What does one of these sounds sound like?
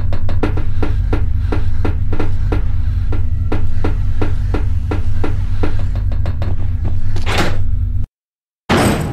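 Footsteps clang steadily on a metal grating floor.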